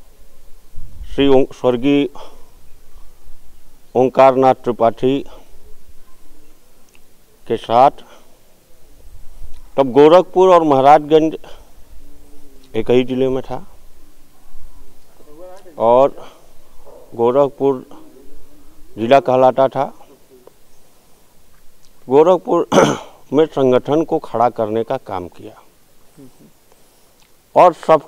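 A man speaks calmly into a close microphone, pausing between phrases.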